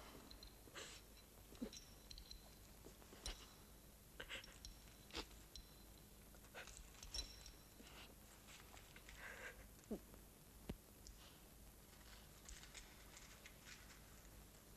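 Small metal parts click and scrape as they are handled.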